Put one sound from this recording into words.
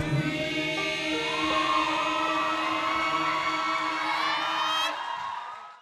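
A choir of men and women sings a long held chord together.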